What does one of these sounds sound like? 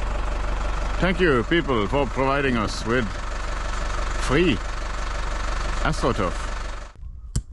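A man talks close up.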